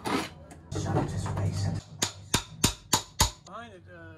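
A pry bar knocks and creaks against wooden boards.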